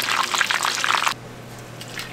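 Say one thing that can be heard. A thick stew bubbles and sizzles in a hot pan.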